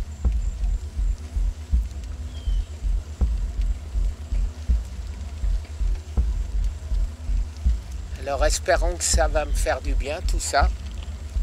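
Wind rumbles and buffets against a microphone.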